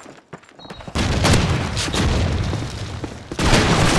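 A pump-action shotgun fires a booming shot.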